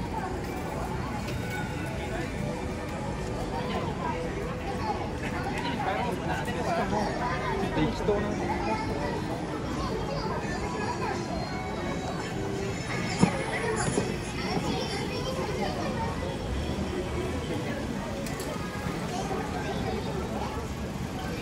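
A busy street crowd murmurs with many voices outdoors.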